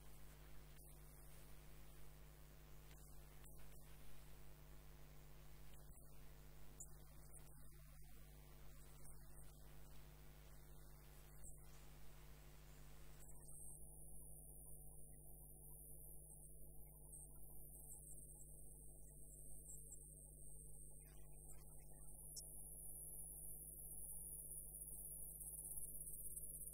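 A long-handled gouge scrapes and cuts into spinning wood, hollowing the end grain.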